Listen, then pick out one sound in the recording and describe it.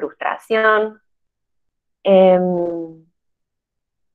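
A young woman speaks briefly and calmly over an online call.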